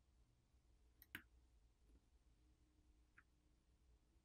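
A tiny metal part clicks softly between fingers.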